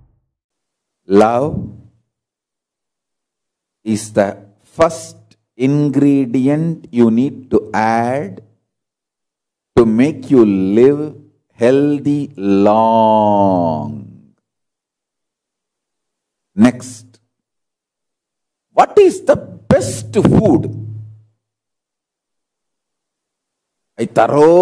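A man speaks calmly into a close microphone, with long pauses.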